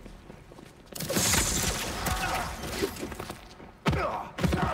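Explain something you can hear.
Punches and thuds of a fight ring out.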